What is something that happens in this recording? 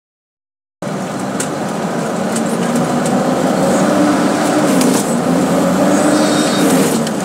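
A truck engine drones steadily inside the cab.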